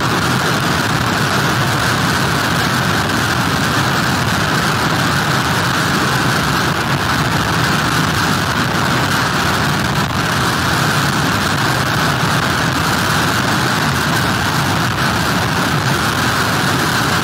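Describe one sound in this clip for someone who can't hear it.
Waves crash and churn onto the shore.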